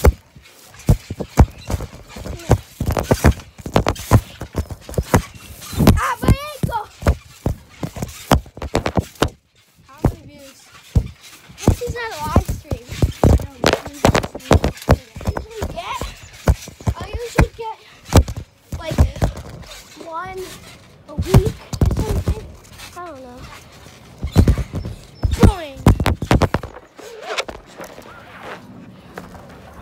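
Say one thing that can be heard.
A trampoline mat thumps and creaks under bouncing feet.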